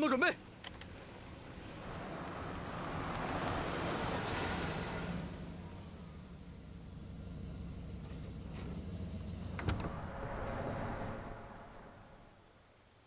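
A truck engine rumbles as a truck approaches on a dirt road.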